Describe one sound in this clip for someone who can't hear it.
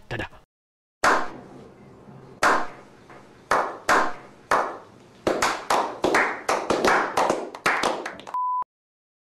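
Several men clap their hands slowly.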